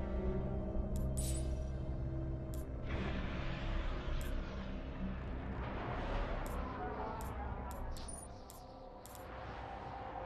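Short electronic menu clicks tick as selections change.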